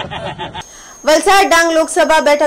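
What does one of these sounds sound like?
A young woman speaks clearly and briskly into a microphone.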